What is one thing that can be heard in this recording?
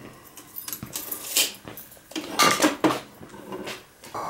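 Metal tools clink and rattle in a toolbox.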